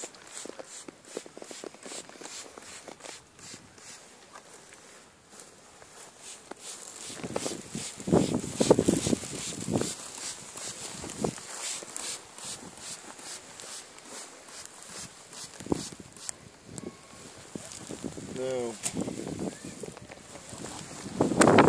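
A swarm of bees buzzes and hums close by.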